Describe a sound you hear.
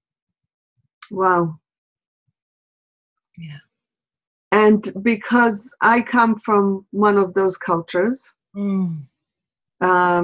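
A second middle-aged woman speaks with animation over an online call.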